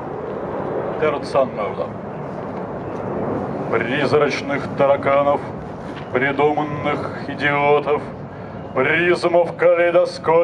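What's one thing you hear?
A man speaks through a microphone and loudspeakers outdoors, reading out clearly.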